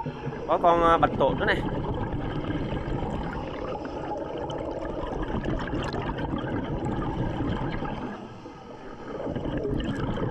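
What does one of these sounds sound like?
Water rumbles and gurgles steadily around a diver underwater.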